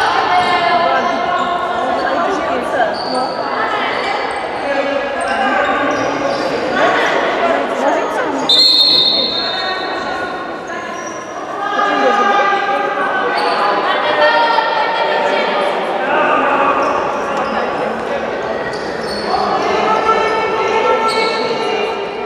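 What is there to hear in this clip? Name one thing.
Young girls shout and cheer loudly in a large echoing hall.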